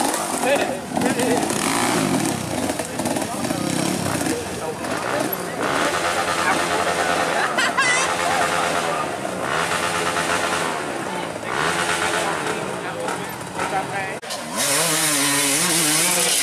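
Dirt bike engines rev and whine, rising and falling.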